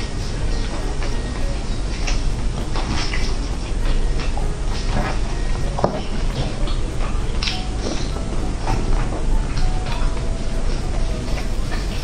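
A young woman chews food with wet smacking sounds close to a microphone.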